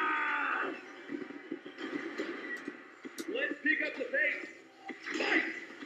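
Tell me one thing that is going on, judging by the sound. Punches and thuds from a fighting game play through a television speaker.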